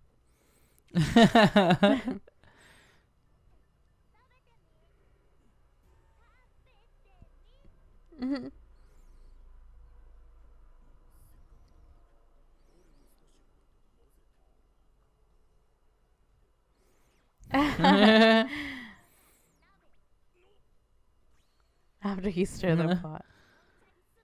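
A young man laughs loudly close to a microphone.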